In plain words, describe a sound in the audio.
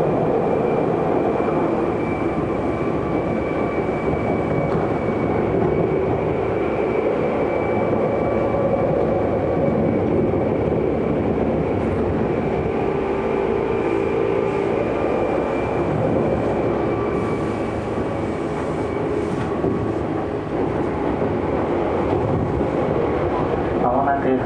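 The chopper-controlled motors of an electric commuter train whine while running, heard from inside the car.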